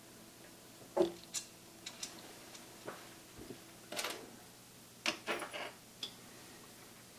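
Hands click and tap on plastic parts of a machine.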